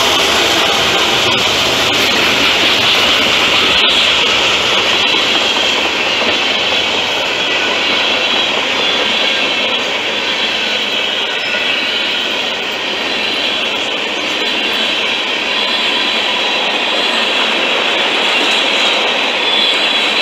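A freight train rumbles past close by, wheels clattering and squealing on the rails.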